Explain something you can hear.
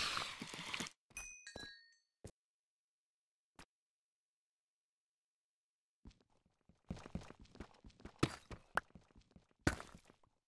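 A pickaxe chips and knocks at stone in quick, repeated taps.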